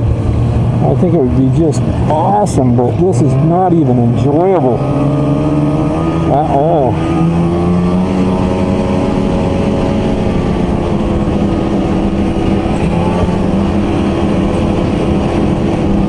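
A snowmobile engine drones up close, revving up and down.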